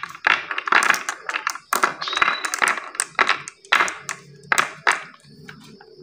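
Marbles click and clack against each other as they are dropped into a wooden track.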